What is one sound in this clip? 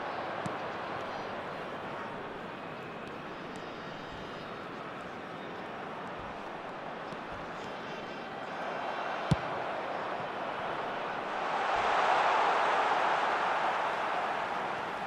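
A large stadium crowd roars steadily, swelling louder near the end.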